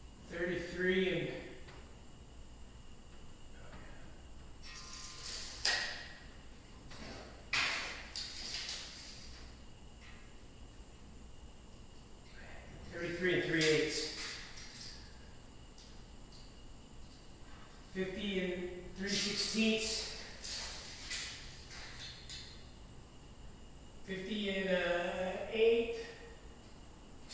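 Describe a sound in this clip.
A man talks calmly.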